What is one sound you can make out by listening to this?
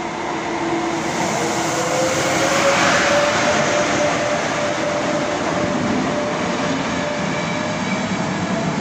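An electric locomotive's motor hums with a rising whine as it passes.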